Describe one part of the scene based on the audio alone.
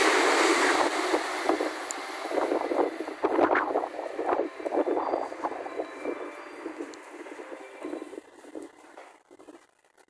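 A train's wheels click and clack over rail joints.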